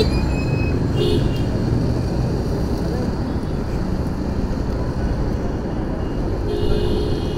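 Wind rumbles and buffets loudly on a moving scooter.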